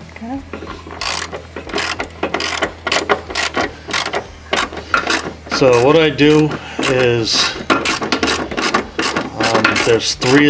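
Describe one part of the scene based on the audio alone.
A ratchet wrench clicks rapidly as it turns.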